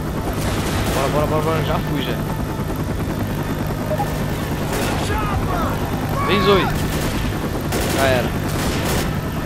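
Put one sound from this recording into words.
A helicopter engine drones with a steady low thrum.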